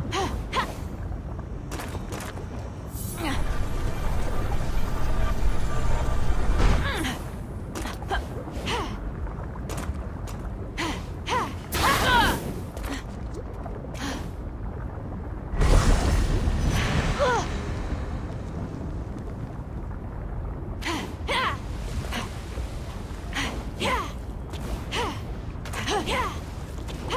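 Lava rumbles and bubbles steadily.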